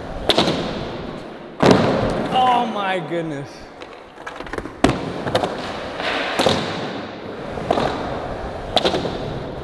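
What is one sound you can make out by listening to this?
A skateboard clatters and slaps against the ground.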